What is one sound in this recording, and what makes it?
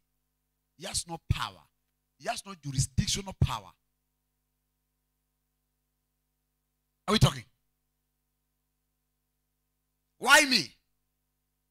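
A man preaches loudly through a microphone in short bursts, with pauses between.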